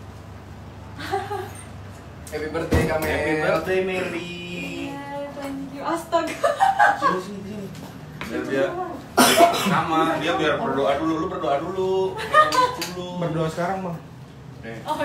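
Several young men talk and laugh together close by.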